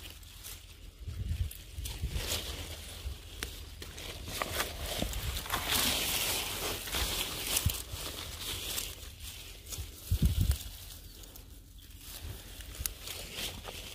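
Leaves rustle as a hand brushes through plants.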